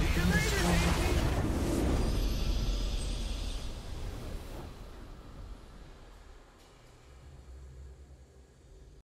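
A triumphant game victory fanfare plays loudly and slowly fades away.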